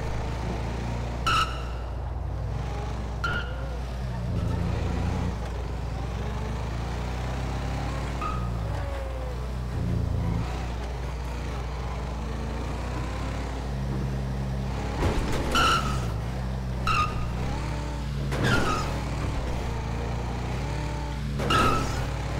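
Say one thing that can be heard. A car engine hums and revs steadily.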